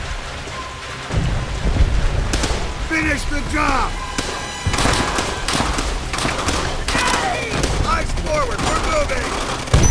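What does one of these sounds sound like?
A rifle fires sharp, repeated shots.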